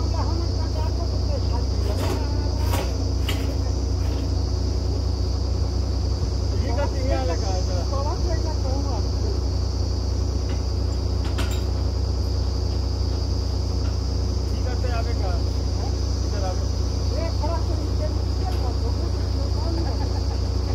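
A drilling rig's engine rumbles steadily nearby.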